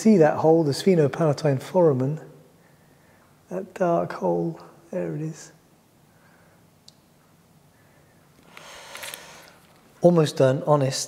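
A middle-aged man speaks calmly and clearly, close to a microphone, with pauses.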